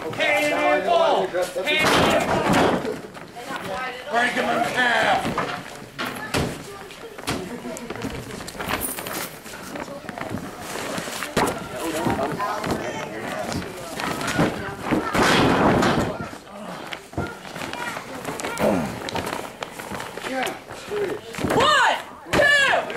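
Men shout and yell loudly in a large echoing hall.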